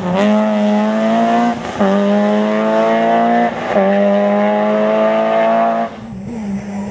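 A rally car engine revs hard and climbs through the gears as it drives away.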